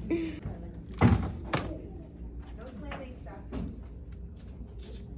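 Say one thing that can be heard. Keyboard keys click as they are pressed.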